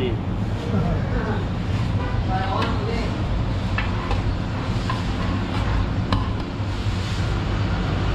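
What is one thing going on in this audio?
A metal ladle clinks and scrapes against a metal tray.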